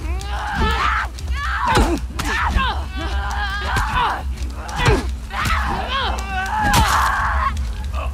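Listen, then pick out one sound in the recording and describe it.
Heavy blows thud during a struggle.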